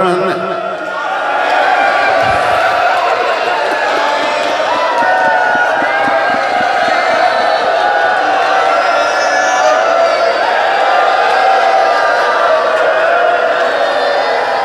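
A group of girls sing a mournful chant together through a microphone.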